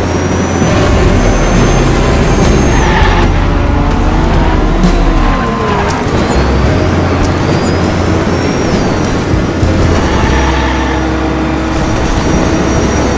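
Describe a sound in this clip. A car engine whines and roars steadily.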